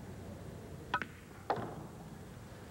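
A cue tip strikes a pool ball with a sharp click.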